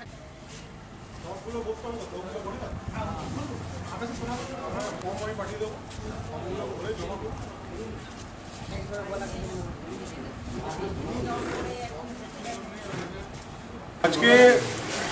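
Several men and women talk at once in a small room.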